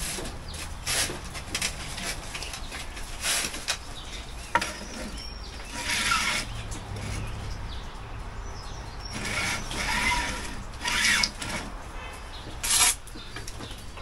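Metal scrapes and clatters against brick.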